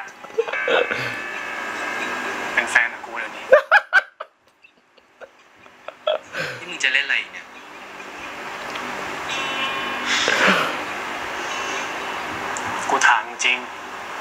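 A man laughs and chuckles close by.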